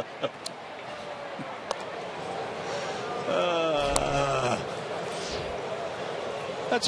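A stadium crowd murmurs in the background.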